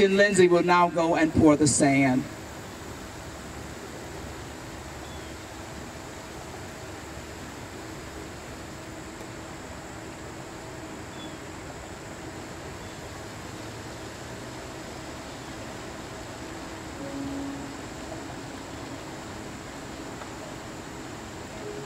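A fountain splashes steadily in a pond.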